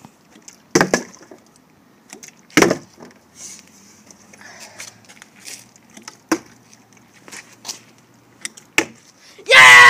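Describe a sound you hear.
A plastic bottle thumps down onto a wooden seat again and again.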